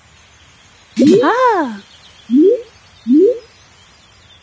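A cartoon woman's voice chirps cheerfully.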